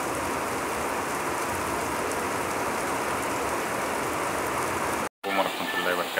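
Floodwater rushes and splashes steadily.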